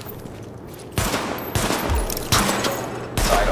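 Gunshots crack sharply several times.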